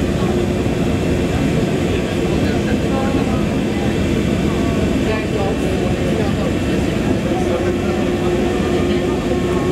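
Water rumbles and churns, heard muffled from underwater.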